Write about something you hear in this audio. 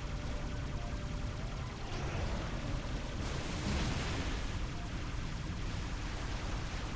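A spaceship engine hums low and steadily.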